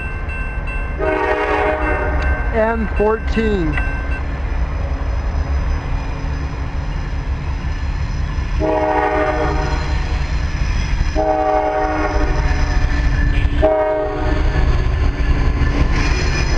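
A train horn blows loudly in several long blasts.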